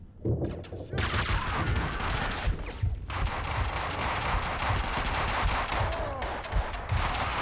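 Pistol shots bang and echo in a large concrete hall.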